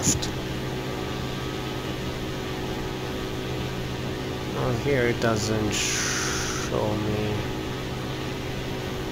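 A small aircraft engine drones steadily.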